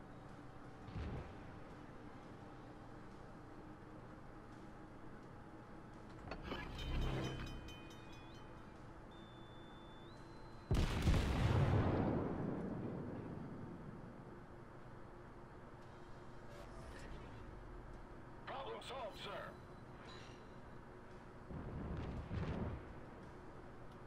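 Heavy naval guns fire with deep, rolling booms.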